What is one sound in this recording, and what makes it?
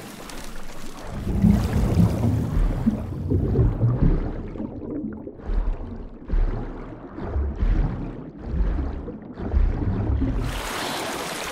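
Water gurgles and rushes deeply as a swimmer moves underwater.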